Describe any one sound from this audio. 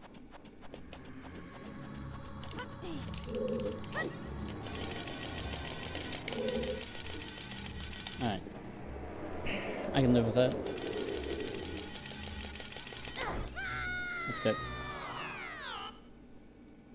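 Game music and sound effects play steadily.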